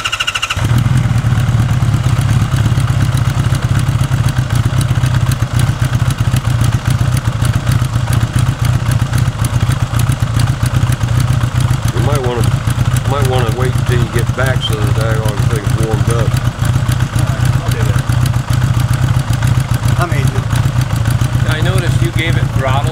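A motorcycle engine starts and idles with a steady rumble.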